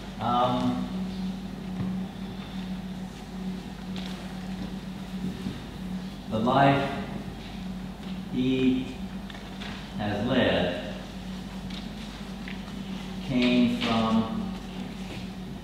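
A man speaks calmly and in short bursts, a little way off.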